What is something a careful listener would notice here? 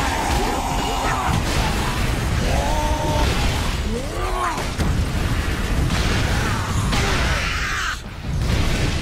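Metal weapons clash and thud in a fierce fight.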